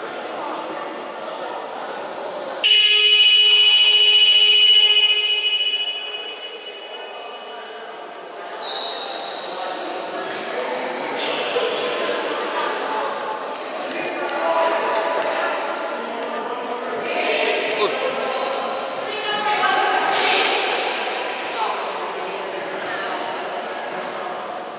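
A crowd of young women and spectators chatter in a large echoing hall.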